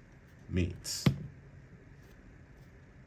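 A small plastic figure is set down on a wooden surface with a light knock.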